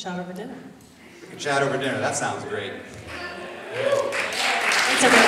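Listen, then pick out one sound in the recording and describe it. A young woman speaks through a microphone in a large echoing hall.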